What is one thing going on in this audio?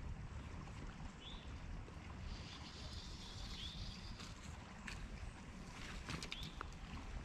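A fishing line swishes through the air.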